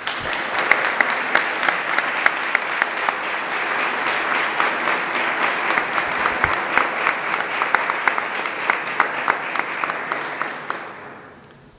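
An audience applauds in a room that echoes, and the applause fades away.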